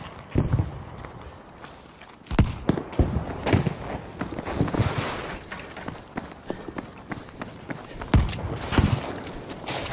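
Rifle shots crack and echo.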